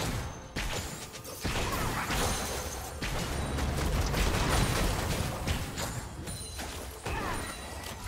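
Video game spell effects crackle and burst during a fast fight.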